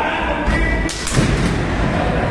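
A wrestler crashes onto a ring mat with a heavy thud.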